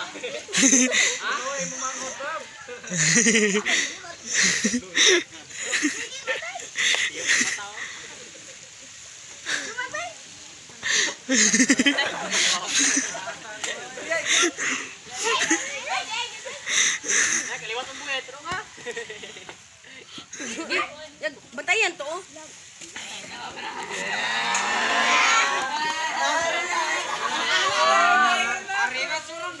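A crowd of children and adults shouts and cheers nearby.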